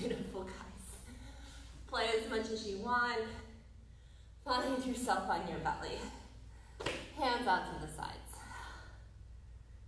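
A woman speaks calmly, giving instructions, in a room with a slight echo.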